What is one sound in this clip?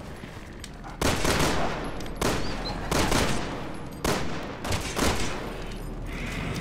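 Gunshots ring out several times with a booming echo.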